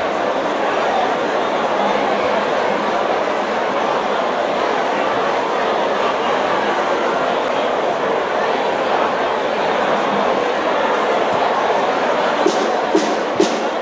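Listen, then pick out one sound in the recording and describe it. A large crowd chatters loudly in a big echoing tent.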